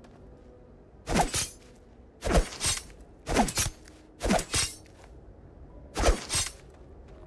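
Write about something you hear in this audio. Short swooshing sounds repeat as a gloved hand searches a fallen body.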